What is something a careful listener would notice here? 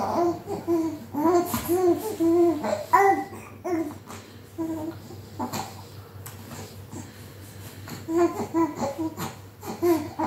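A baby coos and babbles in short bursts close by.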